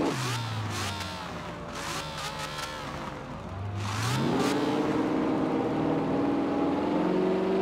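A sports car engine roars and revs up, rising in pitch as it speeds away.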